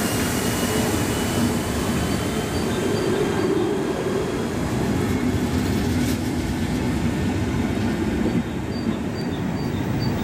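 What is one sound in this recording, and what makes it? A train rumbles past close by, wheels clattering on the rails.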